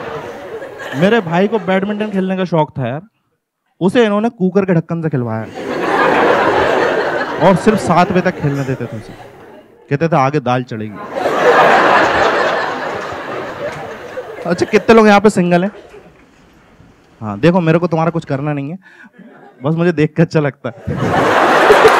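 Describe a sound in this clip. A man talks with animation through a microphone to a live audience.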